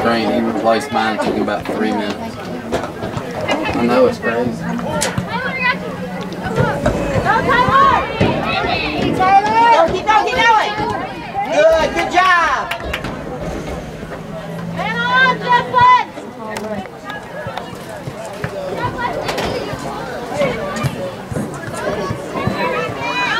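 Young women shout and call out across an open outdoor field.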